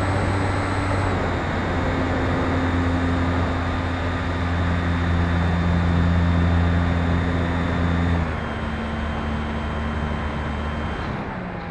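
Wind rushes past a small model plane.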